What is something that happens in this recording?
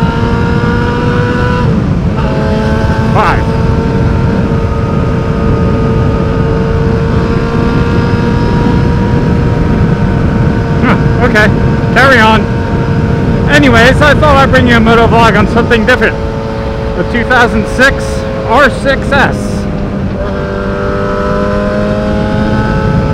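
A motorcycle engine hums steadily as it rides along, its pitch shifting slightly with speed.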